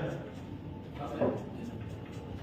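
A billiard ball is set down on a pool table with a soft knock.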